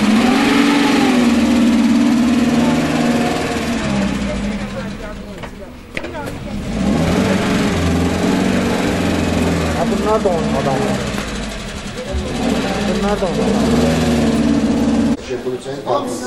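A vehicle engine rumbles low.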